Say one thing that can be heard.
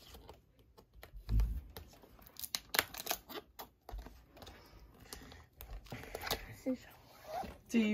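Scissors snip through plastic wrap.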